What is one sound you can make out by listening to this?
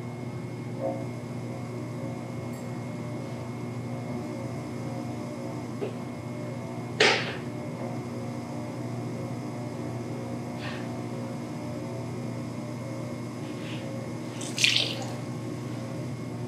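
Wet hands squelch softly against spinning clay.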